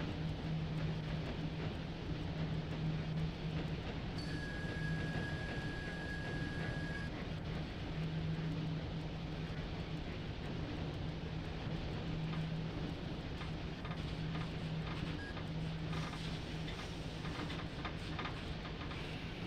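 An electric locomotive hums and rumbles steadily as it rolls along the rails.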